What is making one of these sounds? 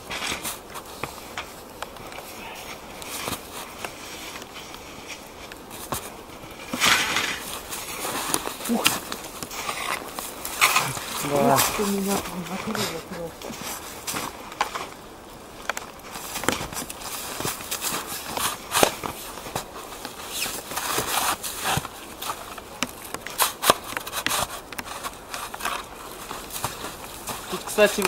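Snow crunches underfoot.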